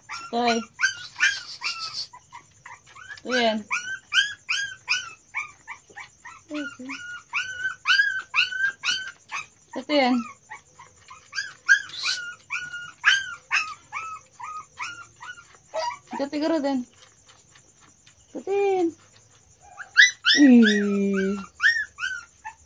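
A kitten mews in rapid, high squeaks.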